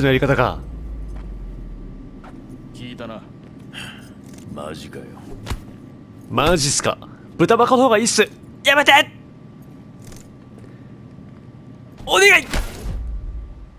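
A man speaks sharply and loudly nearby.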